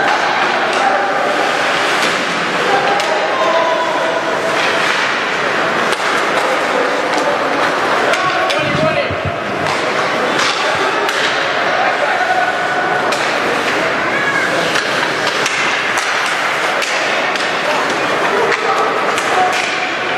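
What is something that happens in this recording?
A crowd murmurs and cheers in an echoing rink.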